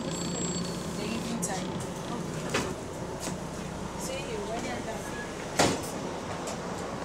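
A bus engine hums and rattles while riding.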